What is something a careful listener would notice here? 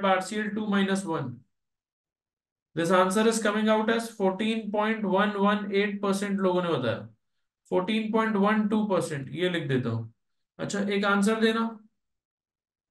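A man speaks calmly into a close microphone, explaining in short bursts.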